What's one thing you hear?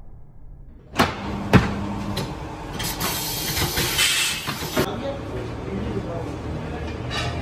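Metal parts clatter and knock nearby.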